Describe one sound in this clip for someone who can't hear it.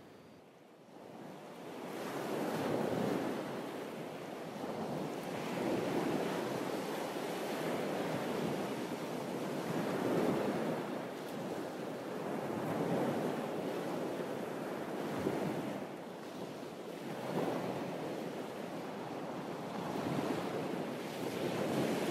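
Small waves wash and splash against rocks at the shore, surging and easing again and again.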